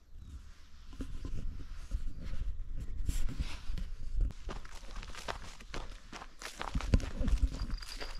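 A caught fish flaps and thumps against the grass.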